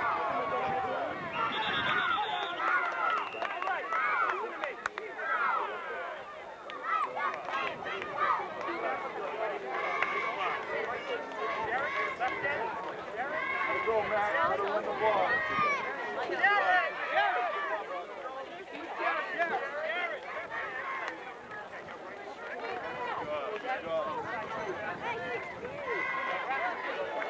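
Young children shout and chatter outdoors.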